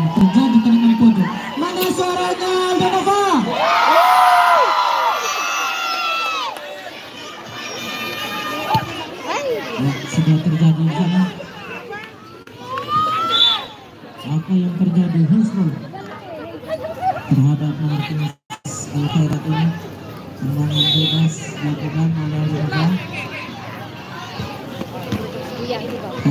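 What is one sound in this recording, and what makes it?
A crowd of spectators shouts and cheers nearby outdoors.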